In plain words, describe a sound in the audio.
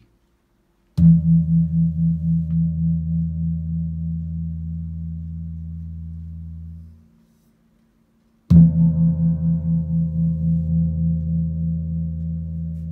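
A gong is struck with a soft mallet and rings out with a deep, pulsing hum.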